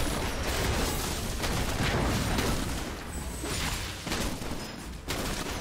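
Video game spells and blows crackle and clash in a battle.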